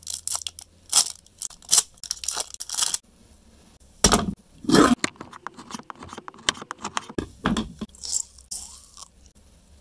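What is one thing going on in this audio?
A knife cuts through a crisp wafer bar with a crunch.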